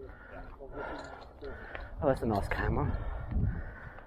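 A man talks calmly nearby outdoors.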